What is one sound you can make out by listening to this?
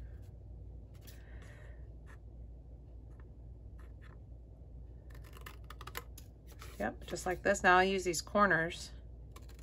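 Scissors snip through thick paper.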